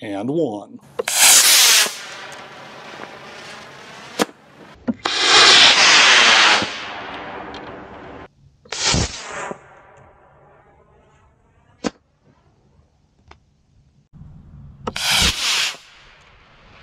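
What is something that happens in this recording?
A small rocket motor ignites and roars with a loud rushing hiss.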